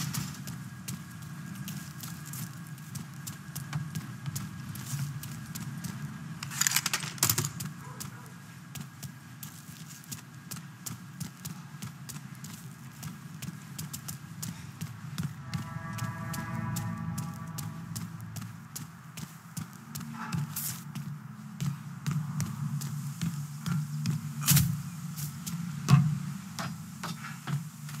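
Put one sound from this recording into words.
Footsteps thud quickly on hard ground.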